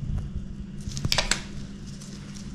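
A small fruit is set down on a cutting board with a soft knock.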